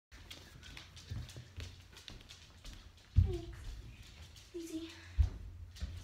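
Small dogs' claws patter and click on a hard floor.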